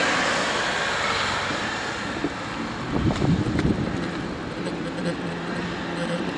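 Bicycle tyres roll and rattle over paving stones.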